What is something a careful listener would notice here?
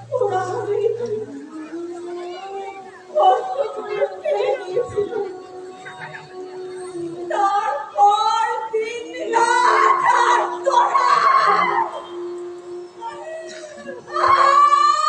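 A man sings in long held notes.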